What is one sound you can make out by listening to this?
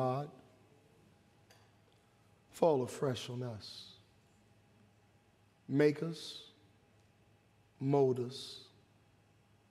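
A man preaches slowly and emphatically through a microphone, with long pauses, in a large hall.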